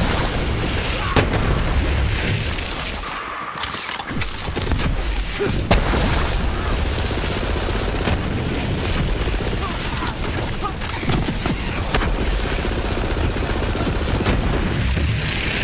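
Explosions boom in a shooter game.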